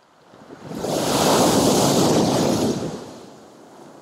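A wave crashes against a concrete pier and splashes loudly.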